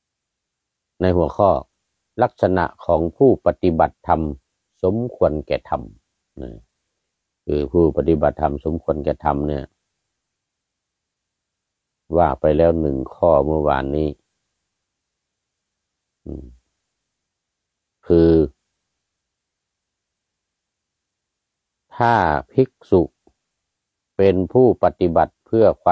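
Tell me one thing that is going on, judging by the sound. A middle-aged man speaks calmly and slowly close to a microphone, with long pauses.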